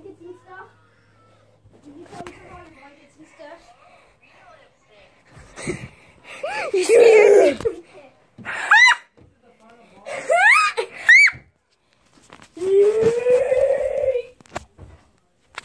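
A young boy talks and squeals loudly and excitedly, close up.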